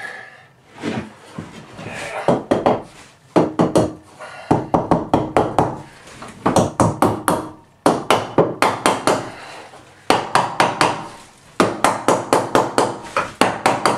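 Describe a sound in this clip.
A hammer taps rapidly on wood.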